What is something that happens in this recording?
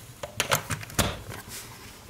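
A switch clicks on a power strip.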